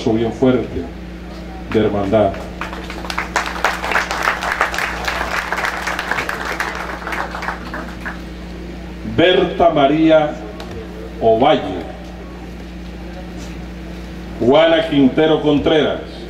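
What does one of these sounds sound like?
A man speaks slowly and firmly through a microphone and loudspeaker, with pauses between phrases.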